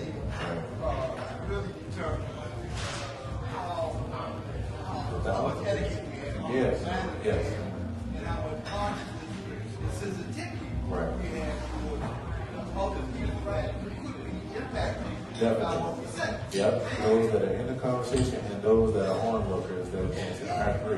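A man speaks calmly to an audience through a microphone and loudspeakers, in a room with a slight echo.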